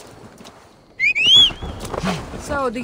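A horse whinnies.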